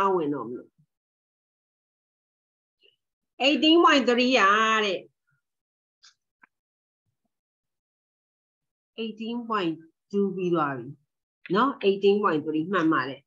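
A middle-aged woman speaks calmly over an online call, pausing between phrases.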